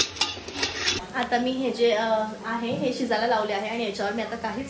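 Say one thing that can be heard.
A young woman talks cheerfully, close by.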